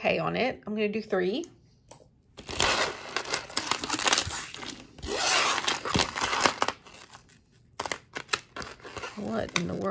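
Beads and metal chains clink and rattle as they are handled.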